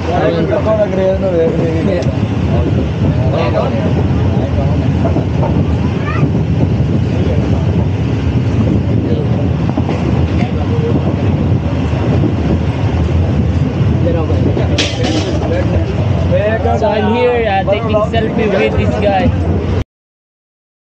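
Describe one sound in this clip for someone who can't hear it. Several young men talk and chatter close by.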